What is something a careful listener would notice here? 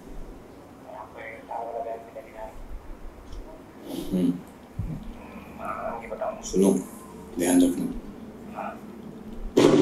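A man speaks tensely through a loudspeaker.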